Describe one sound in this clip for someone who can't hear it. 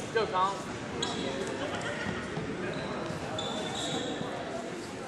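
Sneakers squeak sharply on a mat in an echoing hall.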